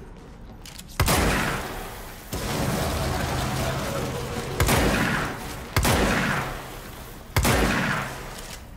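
A pistol fires several loud shots that echo.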